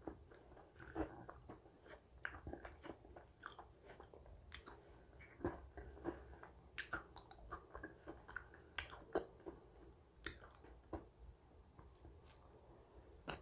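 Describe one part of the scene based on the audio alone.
A spoon scrapes and clinks in a bowl of shaved ice.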